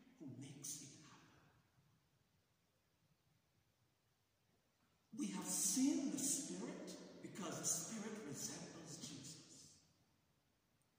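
A man speaks slowly and solemnly in a large echoing hall.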